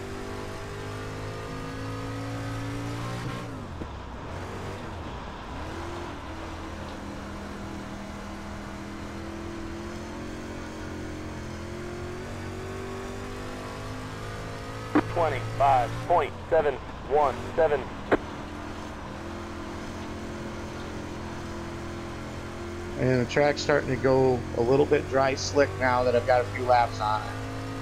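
A racing car engine drones steadily, its pitch rising and falling with the speed.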